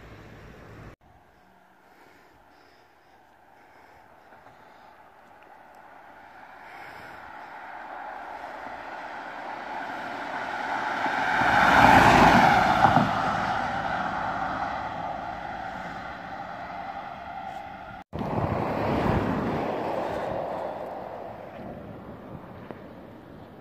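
A police siren wails, growing louder as it approaches and then fading away.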